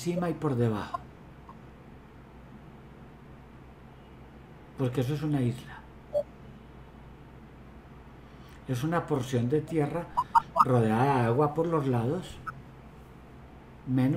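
An older man speaks with animation in pauses, heard over an online call.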